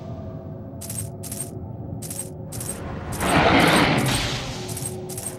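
Bright chimes ring out in quick succession as coins are collected.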